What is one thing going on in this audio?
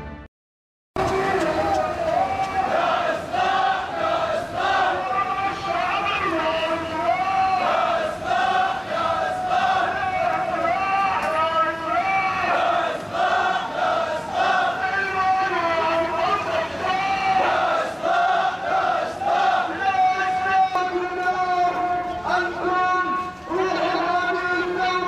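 A crowd chants loudly in unison.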